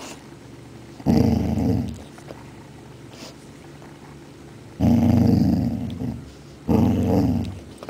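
A dog licks and chews at a food bowl.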